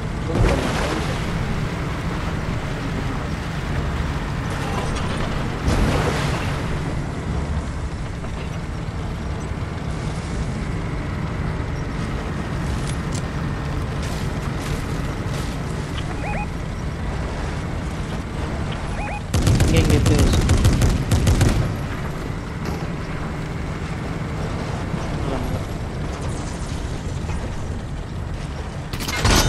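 A heavy vehicle's engine rumbles steadily as it drives.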